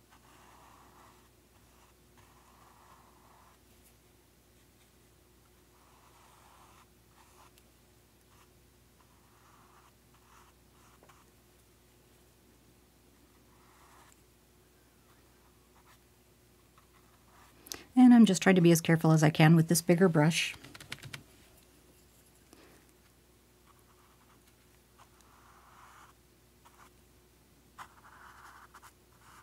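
A paintbrush brushes softly across canvas in short strokes.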